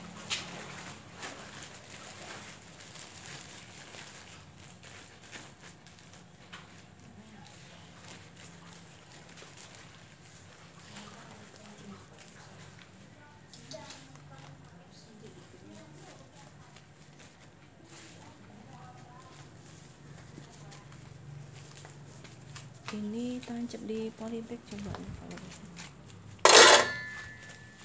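A plastic planting bag crinkles under handling.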